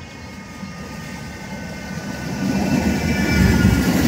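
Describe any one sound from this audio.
A tram's motor whines as it moves.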